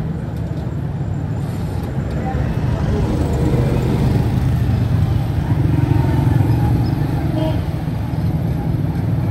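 Motorcycles and rickshaws pass along a busy street.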